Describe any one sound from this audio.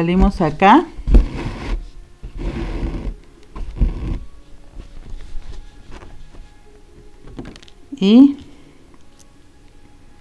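Thread rasps softly as it is pulled through stretched fabric.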